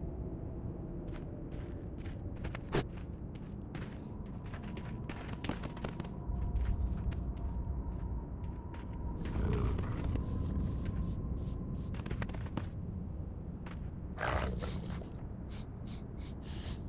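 Footsteps crunch on dry, rocky ground.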